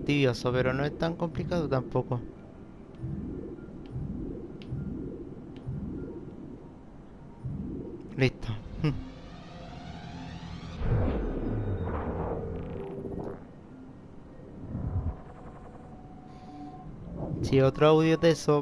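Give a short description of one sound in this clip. Soft electronic tones hum and sweep.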